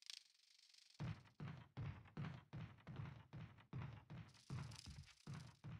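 Heavy footsteps thud steadily on a wooden floor.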